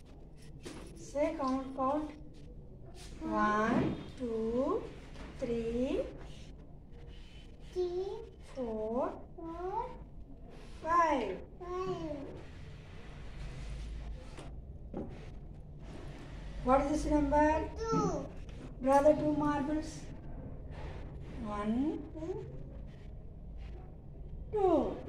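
A young child speaks aloud in short phrases, close by.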